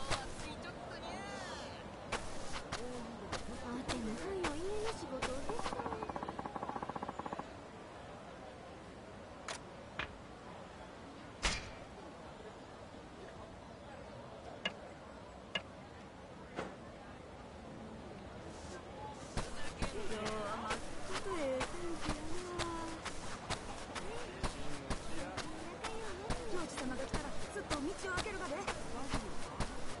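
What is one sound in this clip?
Footsteps crunch steadily on dirt and stone steps.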